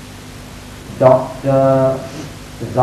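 A young man speaks calmly into a clip-on microphone.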